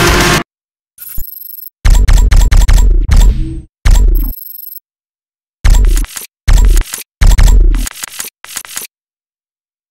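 Menu selection sounds click and swoosh in quick bursts.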